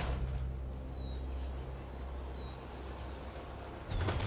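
Large wings whoosh and flap in a rush of air.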